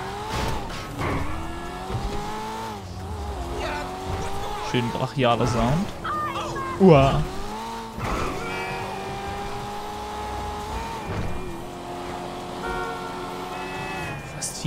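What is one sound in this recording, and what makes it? A sports car engine revs and rises in pitch through several gear changes.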